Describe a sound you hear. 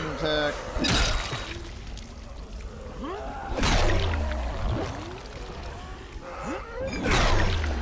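A heavy blunt weapon smacks wetly into flesh.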